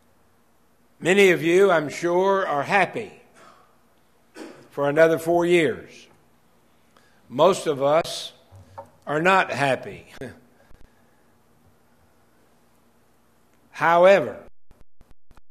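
An elderly man speaks slowly and earnestly into a microphone, in bursts with pauses.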